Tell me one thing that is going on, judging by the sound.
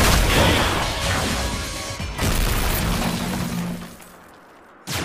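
A magical blast bursts with a loud crackling roar.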